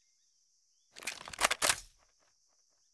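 A rifle's metal parts click and rattle as it is handled.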